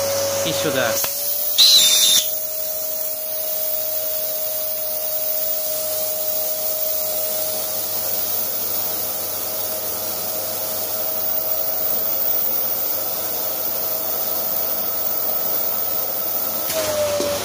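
A vacuum cleaner hose sucks air out of a plastic bag with a whistling hiss.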